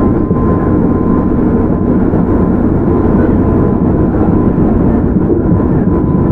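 An electric train hums and rumbles steadily close by.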